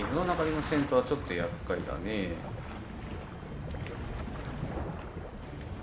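Water splashes gently as someone swims.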